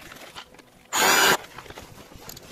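A cordless drill whirs briefly.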